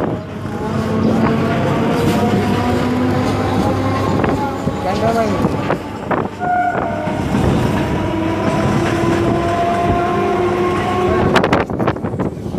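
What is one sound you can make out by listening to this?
Train wheels whine on the tracks.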